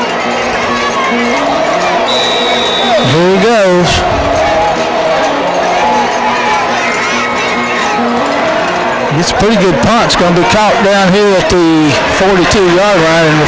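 A large crowd of spectators chatters and shouts outdoors.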